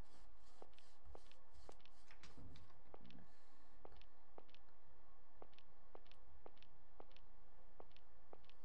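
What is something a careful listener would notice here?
Footsteps fall in an even walking rhythm.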